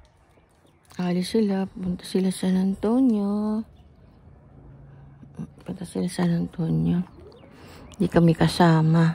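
An elderly woman speaks in a high, drawn-out voice close by.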